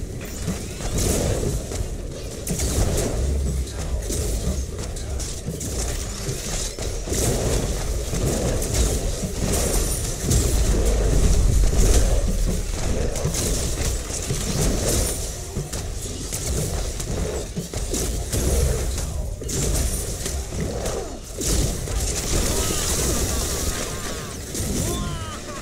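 Explosions rumble deeply again and again.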